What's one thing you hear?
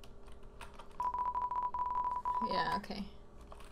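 Rapid high electronic blips chatter in quick succession.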